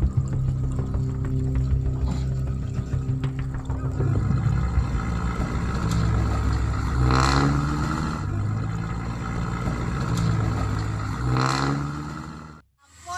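Heavy tyres churn through thick mud.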